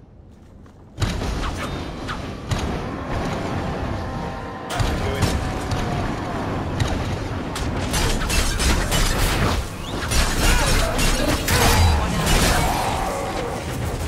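Fiery blasts burst and crackle in a fight.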